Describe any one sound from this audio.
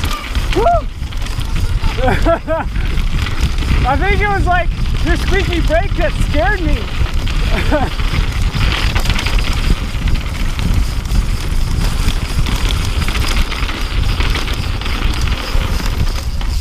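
Bicycle tyres crunch and rattle over rocky dirt.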